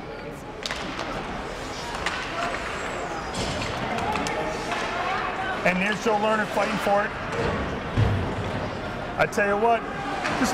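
Skates scrape across ice in an echoing rink.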